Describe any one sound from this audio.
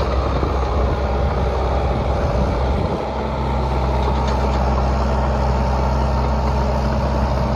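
Metal tracks clank and squeak as a tractor moves over grass.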